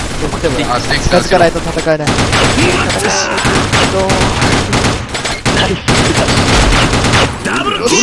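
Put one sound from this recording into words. A sniper rifle fires loud, sharp single shots.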